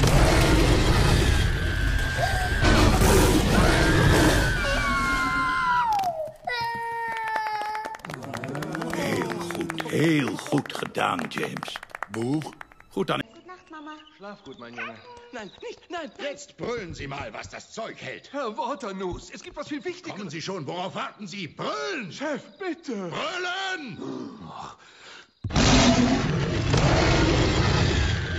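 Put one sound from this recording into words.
A young boy screams in terror.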